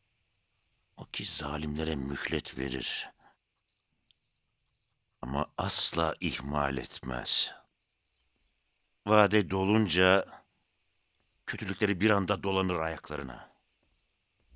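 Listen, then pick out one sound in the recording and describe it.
A man speaks tensely and firmly, close by.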